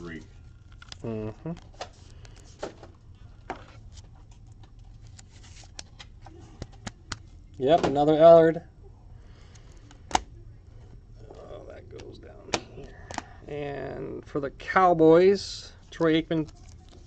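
Plastic card sleeves and wrappers crinkle and tap as they are handled.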